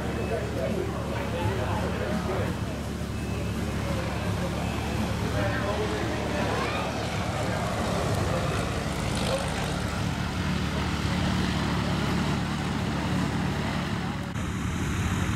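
A small propeller plane drones as it flies low overhead.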